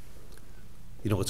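A middle-aged man begins to speak into a microphone.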